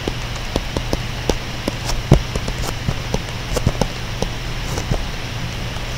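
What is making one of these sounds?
A stylus taps and scratches on a tablet.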